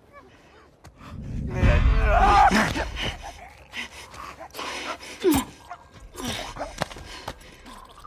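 A struggling body thuds and scuffles onto a floor.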